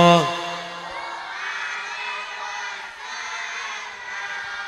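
A crowd of women sings along softly.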